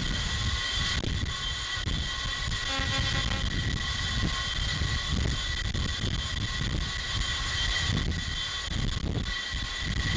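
A jet engine whines and roars steadily nearby.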